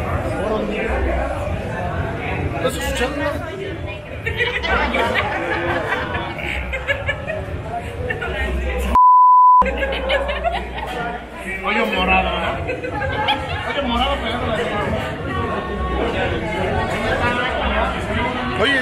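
Men and women talk and greet each other over the chatter of a lively crowd.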